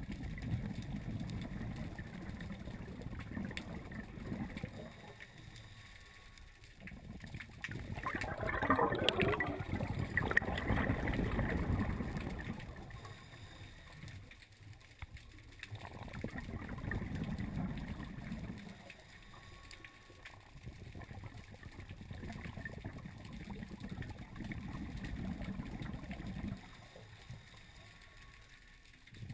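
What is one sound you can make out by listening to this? Scuba breathing bubbles and rushes, muffled underwater, in slow, regular surges.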